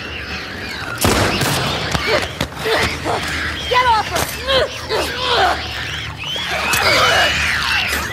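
Heavy blows thud during a struggle.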